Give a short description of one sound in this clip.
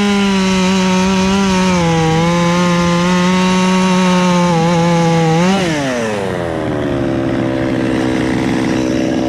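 A chainsaw engine runs loudly at high speed, then its pitch drops sharply as it settles to a low idle.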